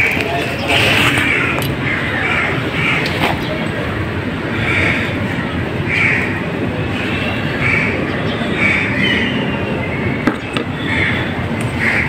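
Metal parts clink and tap.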